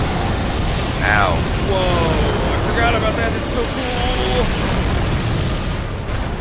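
A magical blast booms and rumbles.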